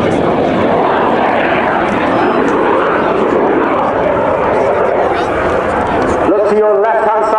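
Jet aircraft roar loudly overhead and pass by.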